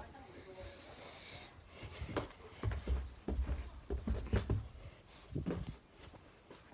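Bare feet thud softly down carpeted stairs.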